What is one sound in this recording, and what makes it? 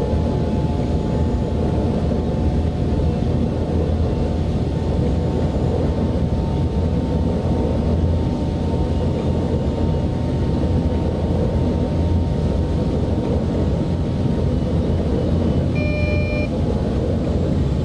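A train rumbles steadily along the tracks with a low electric hum.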